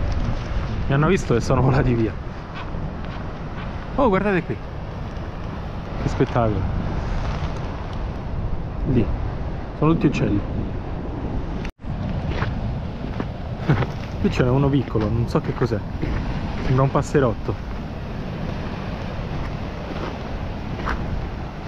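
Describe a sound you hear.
Waves wash over a rocky shore.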